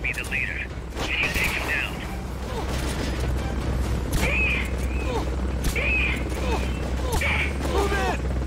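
A pistol fires single shots.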